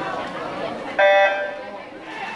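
A start beep sounds sharply.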